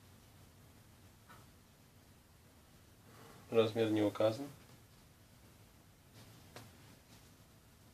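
Fabric rustles softly as clothes are folded by hand.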